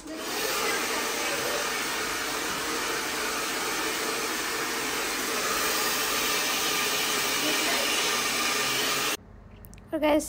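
A hair dryer blows with a steady, loud roar, then cuts off abruptly.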